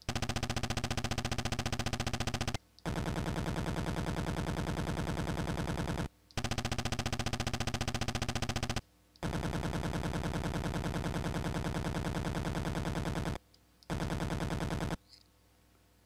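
Rapid electronic blips chatter in short bursts, like text typing out in a retro video game.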